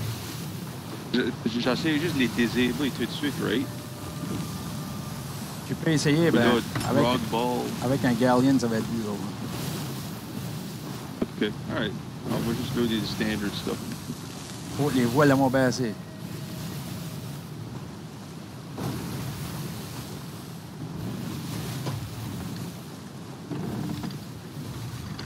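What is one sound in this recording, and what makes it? Waves surge and splash against a wooden boat.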